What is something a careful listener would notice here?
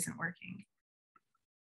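A woman speaks briefly with animation over an online call.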